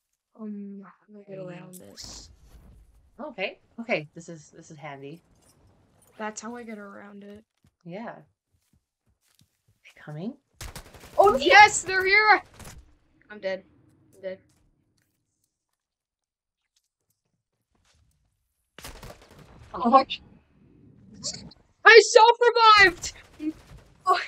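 A woman talks with animation into a microphone, sometimes shouting excitedly.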